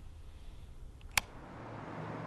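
A button clicks as a finger presses it.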